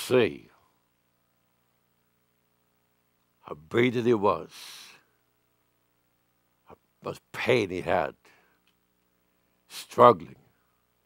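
An elderly man preaches with emphasis into a microphone, pausing between phrases.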